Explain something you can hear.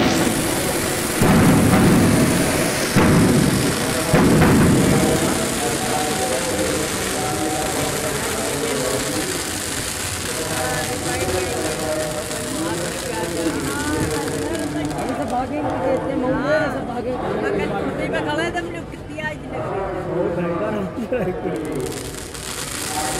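A crowd of people chatters and shouts nearby.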